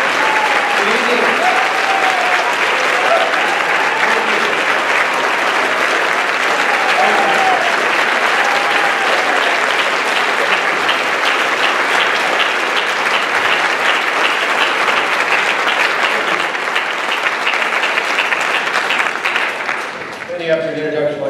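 A large crowd applauds and cheers loudly in a big hall.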